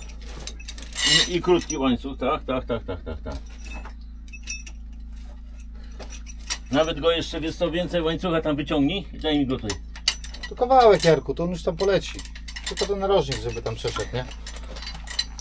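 Men talk nearby in short, calm exchanges.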